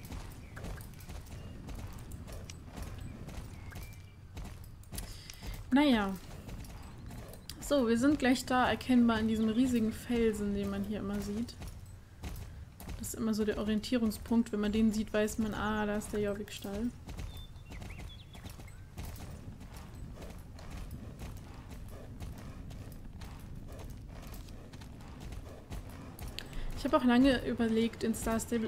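Horse hooves clop steadily on a path.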